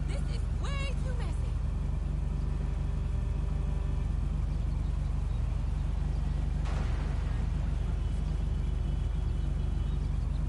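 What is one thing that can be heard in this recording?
A motorcycle engine idles with a low, steady hum.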